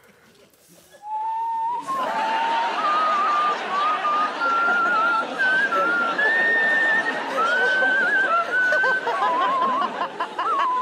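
A man whistles a wavering tune up close.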